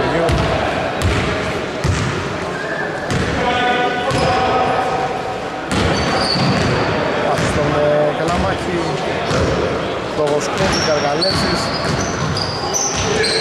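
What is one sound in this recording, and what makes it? Players shout to each other across an echoing hall.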